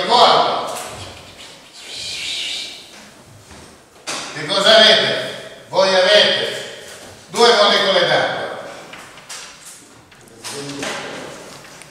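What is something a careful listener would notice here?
An elderly man speaks in a lecturing tone in an echoing room.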